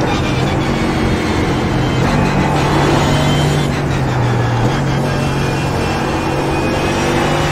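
A racing car engine roars loudly, its pitch stepping as it shifts down through the gears.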